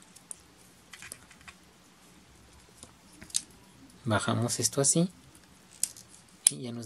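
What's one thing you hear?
Plastic toy parts click and rattle as they are handled.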